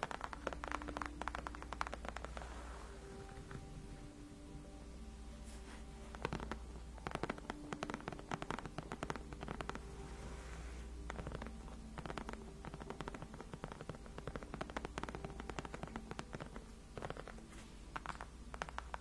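Long fingernails tap and scratch on a leather chair back close to a microphone.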